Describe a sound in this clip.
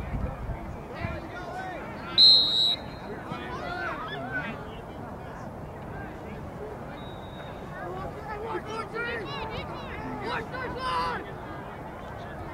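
Young women call out to each other across an open field.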